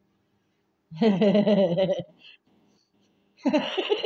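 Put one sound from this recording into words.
A middle-aged woman laughs loudly, close by.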